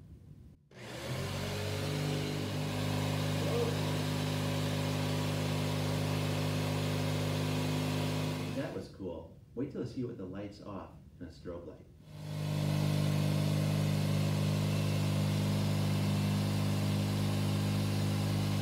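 A small motor vibrating a string hums with a steady, low buzz.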